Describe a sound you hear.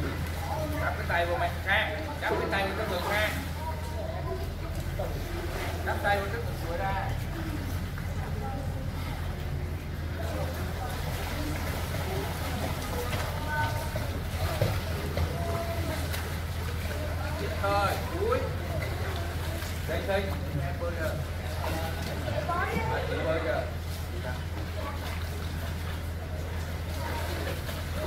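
Swimmers splash and kick in the water.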